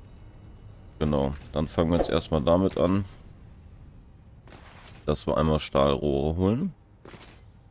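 A man speaks into a nearby microphone.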